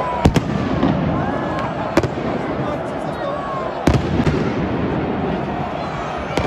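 A large stadium crowd roars and chants.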